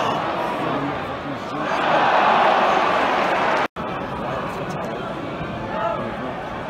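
A large stadium crowd chants and cheers loudly, outdoors.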